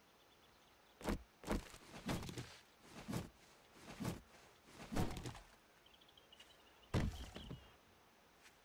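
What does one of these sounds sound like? Heavy blows thud against a wooden wall, again and again.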